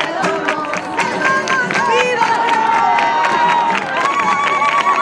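Many people clap their hands.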